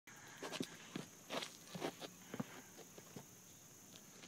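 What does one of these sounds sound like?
Clothes rustle and scrape as a man shifts and sits down.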